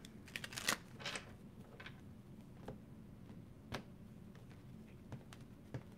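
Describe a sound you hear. Playing cards are set down on a table with light taps.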